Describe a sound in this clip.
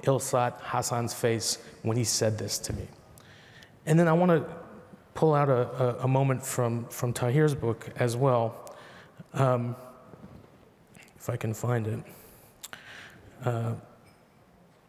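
A man speaks calmly into a microphone, heard over a loudspeaker.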